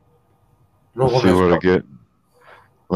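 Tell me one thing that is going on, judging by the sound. A young man speaks loudly through an online call.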